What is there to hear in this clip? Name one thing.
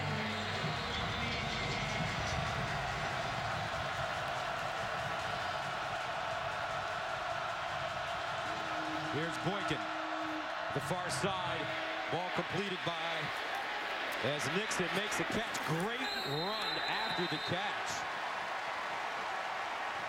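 A large crowd cheers and roars steadily in a big open stadium.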